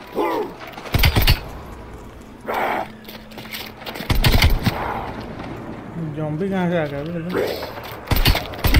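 Gunshots fire in quick bursts, loud and sharp.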